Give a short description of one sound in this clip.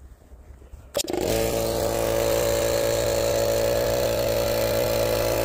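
An air compressor motor starts and runs with a loud steady hum.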